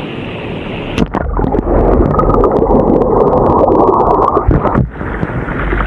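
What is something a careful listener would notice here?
Water gushes and bubbles, heard muffled from underwater.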